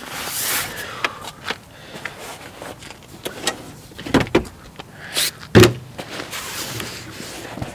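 A fabric bag rustles as it is handled.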